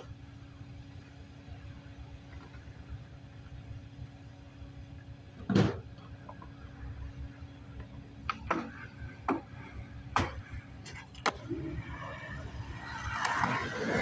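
Skateboard wheels roll over pavement.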